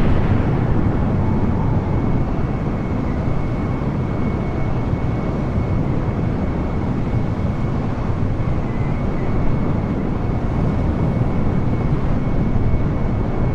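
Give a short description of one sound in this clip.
A jet airliner's engines roar steadily with a faint high whine.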